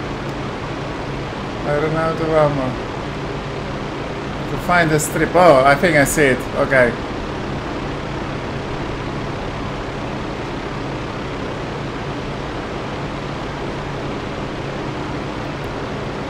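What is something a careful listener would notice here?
A small propeller plane's engine drones steadily in flight.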